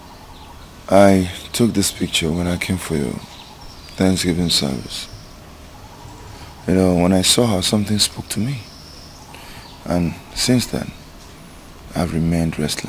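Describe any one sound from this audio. A man speaks slowly and emotionally, close by.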